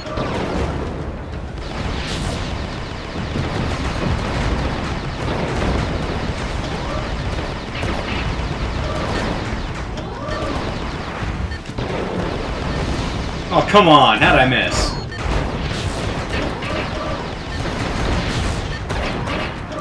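Explosions boom repeatedly.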